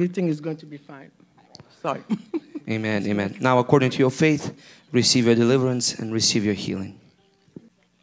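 A woman speaks emotionally into a microphone.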